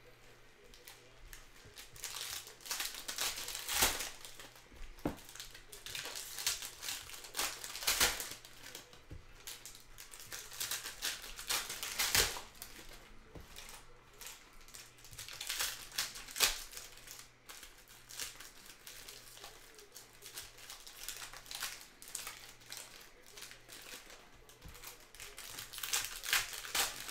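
Foil wrappers crinkle and tear as packs are ripped open.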